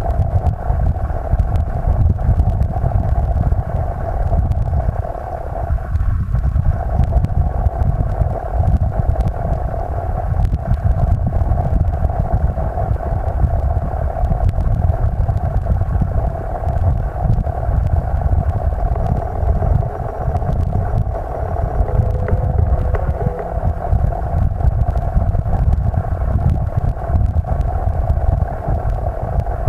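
Water rushes and gurgles steadily, heard from underwater.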